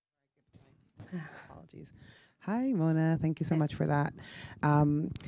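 A woman speaks calmly into a microphone, heard through loudspeakers.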